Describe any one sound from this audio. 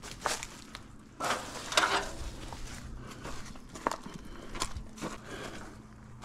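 A metal ladder clanks and rattles as it is handled.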